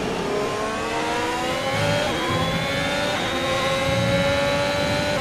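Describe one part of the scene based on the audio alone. A racing car engine screams at high speed, climbing in pitch and dipping briefly at each gear change.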